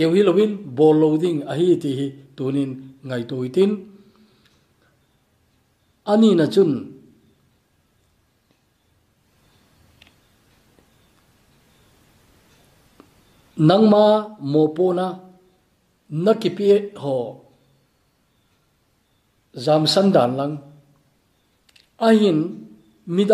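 An elderly man speaks calmly into a close microphone, with pauses.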